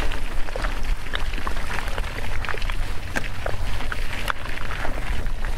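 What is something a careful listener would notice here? Bicycle tyres crunch and rattle over a rocky dirt trail.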